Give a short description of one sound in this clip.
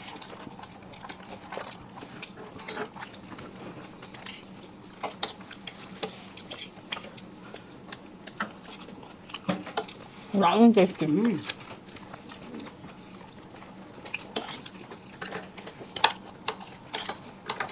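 Mouths chew and slurp noodles close up with wet smacking sounds.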